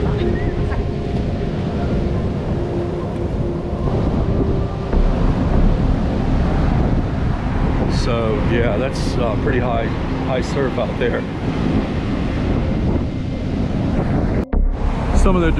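Surf crashes and roars steadily.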